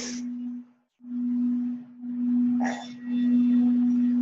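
A singing bowl hums with a steady, swelling ringing tone.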